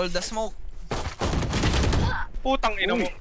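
A pistol fires sharp shots.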